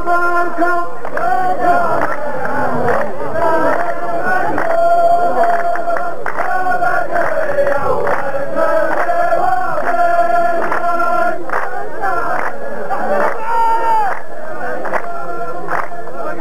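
A large group of men chant together in unison.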